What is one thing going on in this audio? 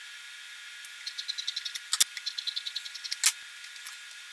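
Scissors snip quickly through fabric.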